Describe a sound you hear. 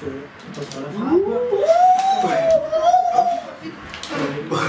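A young man sings out loudly with a wavering voice, close by.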